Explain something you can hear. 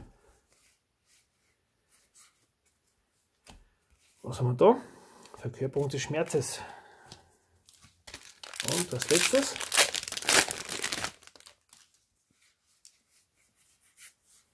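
Playing cards rustle and slide against each other.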